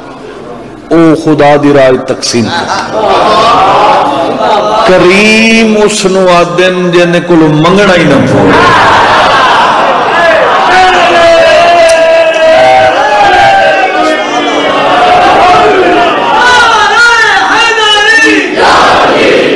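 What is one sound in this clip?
A man chants and speaks with passion into a microphone, heard through loudspeakers.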